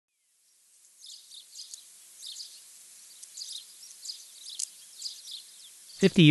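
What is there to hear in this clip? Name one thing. Birds chirp and twitter outdoors.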